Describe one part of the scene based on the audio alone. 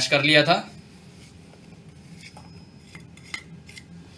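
Food is scraped from a small dish into a plastic bowl.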